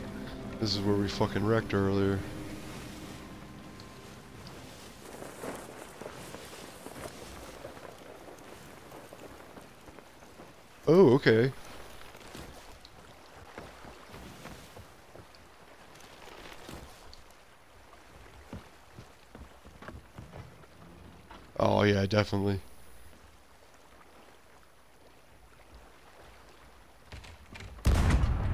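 Waves lap gently against a wooden ship's hull.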